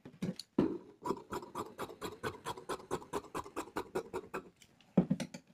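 Scissors snip through fabric in quick, even cuts.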